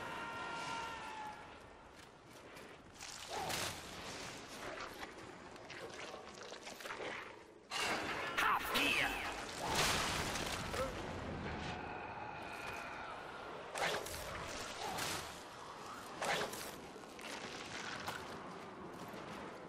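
Footsteps scuff on stone in a large echoing hall.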